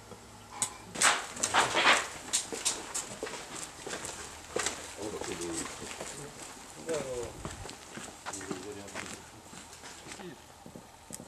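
Boots scuff and step on hard ground nearby.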